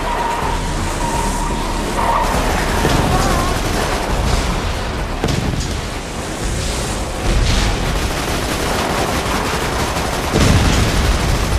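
A vehicle engine roars steadily.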